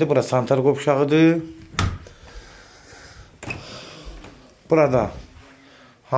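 A door knocks as it swings open.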